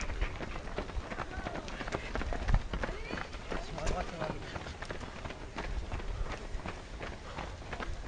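A woman's footsteps tap on paving stones.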